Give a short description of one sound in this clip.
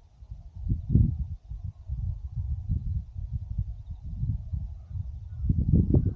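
Wind rumbles and buffets in gusts outdoors.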